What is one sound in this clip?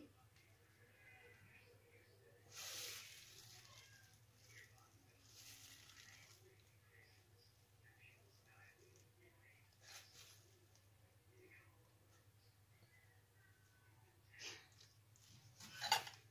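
A plastic piping bag crinkles and rustles softly.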